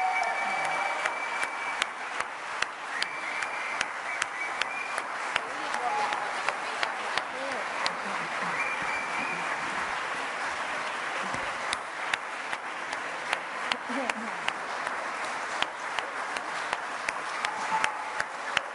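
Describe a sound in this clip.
An audience applauds in a large echoing hall.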